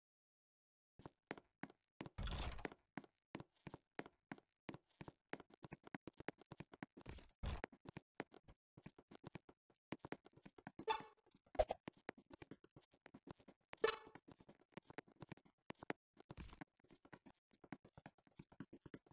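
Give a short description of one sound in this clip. Footsteps tap quickly and steadily on a wooden floor.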